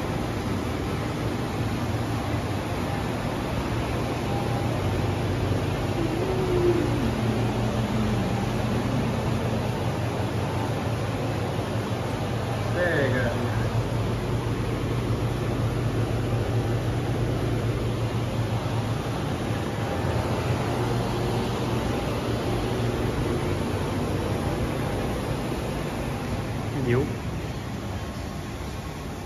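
Cooling machines hum and whir steadily with fans running.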